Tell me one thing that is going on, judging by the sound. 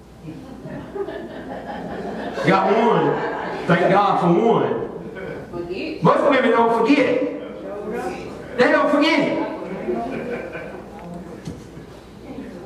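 An elderly man speaks with animation, heard through a microphone.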